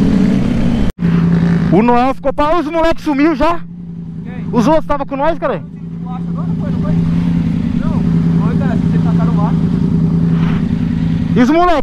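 A motorcycle engine idles steadily.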